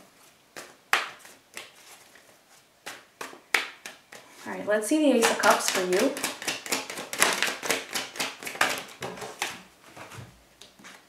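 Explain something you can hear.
Playing cards riffle and flick with quick, crisp snaps.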